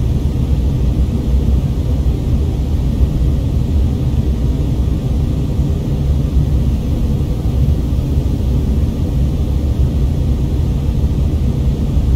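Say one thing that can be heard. A jet engine drones with a steady, deep rumble inside an airliner cabin.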